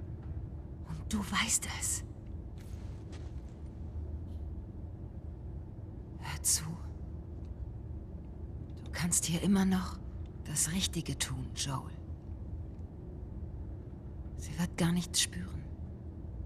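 A woman speaks urgently, close by.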